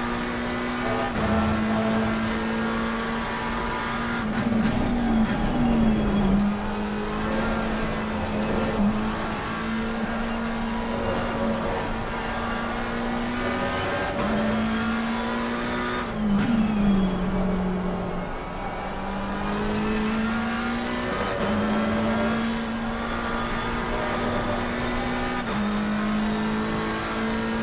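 A racing car engine roars steadily, its pitch climbing and dropping sharply with each gear change.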